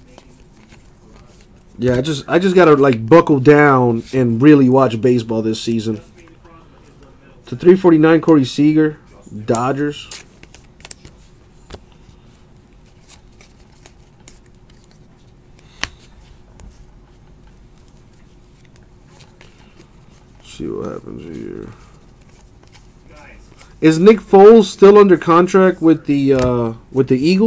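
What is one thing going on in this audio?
Trading cards rustle and flick between hands close by.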